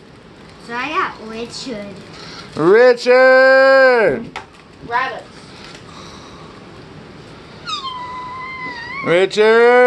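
A young girl talks and squeals excitedly close by.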